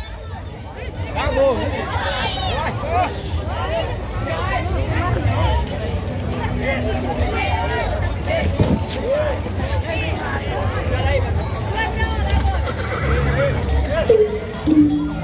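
A crowd of people talks and calls out outdoors.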